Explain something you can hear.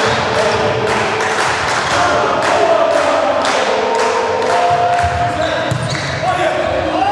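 A crowd cheers and makes noise in a large echoing hall.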